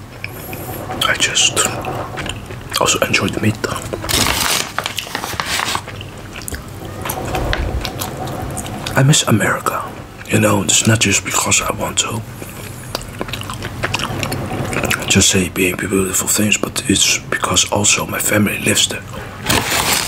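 A man chews crunchy snacks close to a microphone.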